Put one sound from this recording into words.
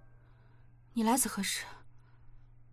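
A young woman answers calmly close by.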